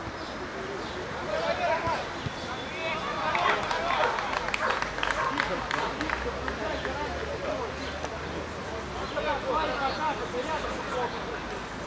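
Men shout outdoors at a distance.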